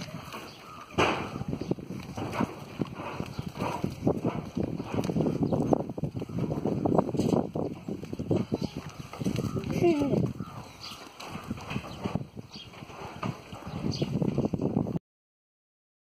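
Leafy branches rustle and shake as goats tug at them.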